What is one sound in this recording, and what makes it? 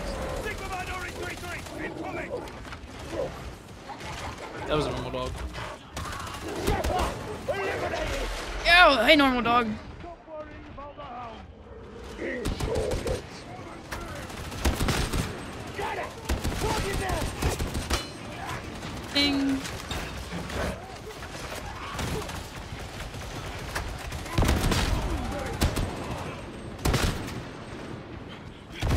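Automatic guns fire in rapid bursts.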